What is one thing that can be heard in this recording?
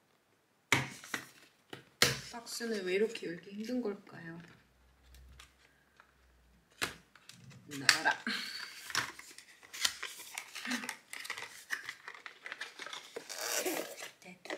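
Cardboard scrapes and rustles as a box is pulled open.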